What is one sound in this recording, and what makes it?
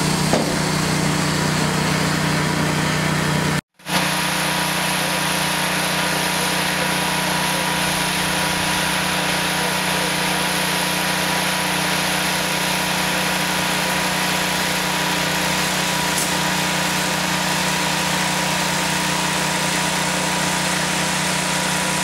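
A machine motor hums steadily.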